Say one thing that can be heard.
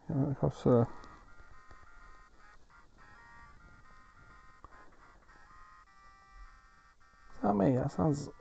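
Retro video game title music plays.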